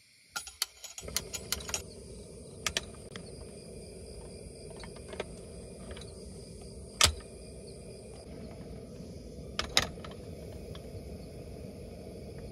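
A gas burner roars steadily.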